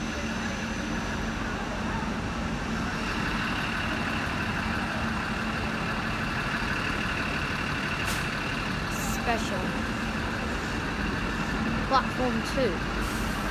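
A train rumbles and hums steadily along the tracks.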